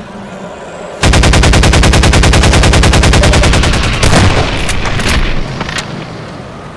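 A gun fires in a rapid burst of shots.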